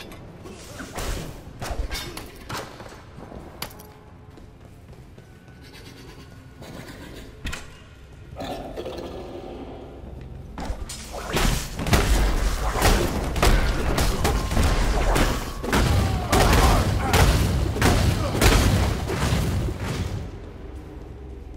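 Sword blows strike and clatter in a fight.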